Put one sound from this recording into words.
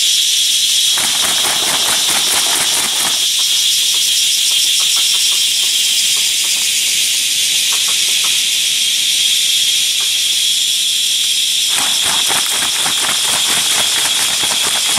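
Footsteps rustle and crunch through leaves and undergrowth.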